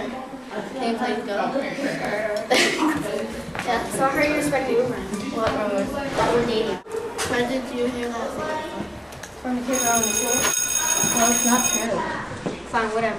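Children talk with animation close by.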